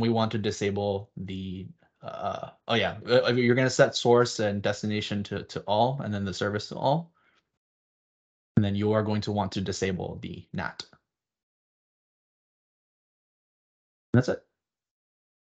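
A young man talks calmly through a microphone.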